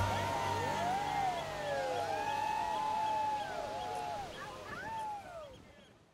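Seagulls cry overhead.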